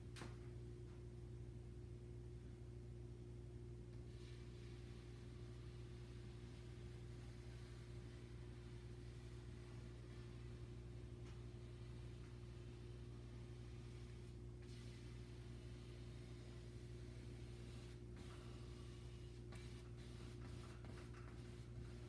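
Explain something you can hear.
A paintbrush dabs and swishes softly on canvas.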